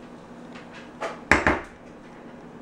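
A spatula knocks against a plastic bowl.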